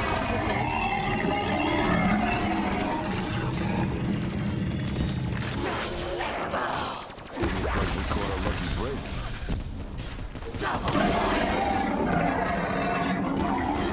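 A ray gun fires buzzing energy blasts.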